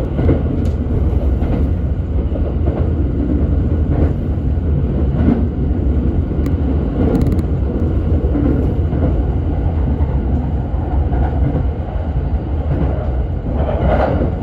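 Road noise hums and rattles through the car's cabin.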